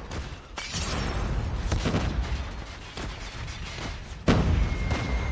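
A rifle fires bursts of loud gunshots.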